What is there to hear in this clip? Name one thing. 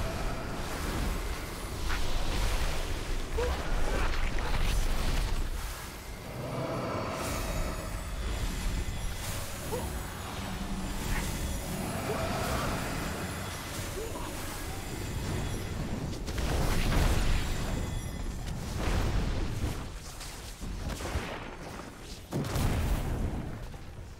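Spell effects whoosh and crackle in a game battle.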